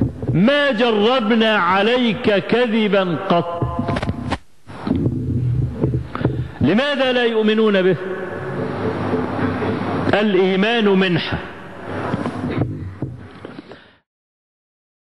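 A man chants in a sing-song voice through a microphone.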